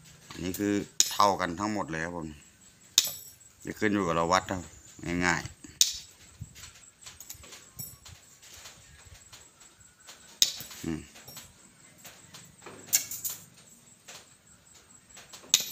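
Pliers snip through thin metal rods with sharp clicks.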